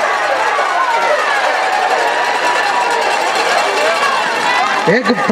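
A stadium crowd cheers and shouts loudly outdoors.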